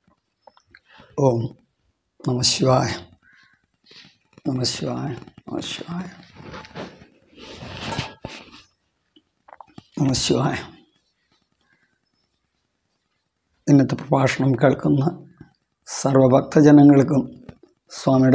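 An elderly man speaks calmly and slowly, close to a microphone, with pauses.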